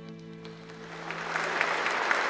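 A band plays a short chord as a song ends.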